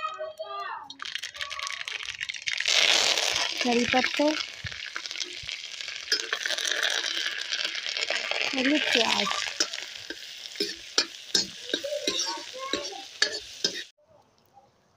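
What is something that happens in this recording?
Oil sizzles loudly in a hot pan.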